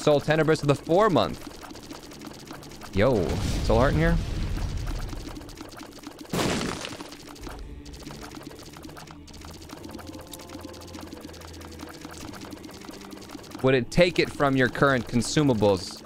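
Video game sound effects pop and blast steadily.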